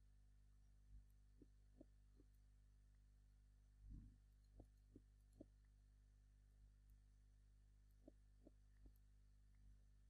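A pickaxe chips at stone blocks with short, soft knocks.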